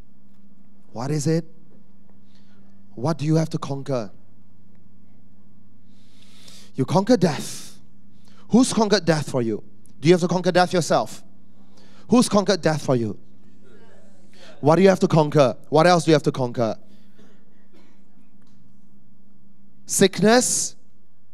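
A man speaks with animation into a microphone, in short bursts with pauses, heard through a loudspeaker.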